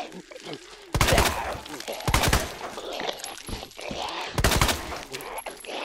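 Gunshots ring out loudly, one after another.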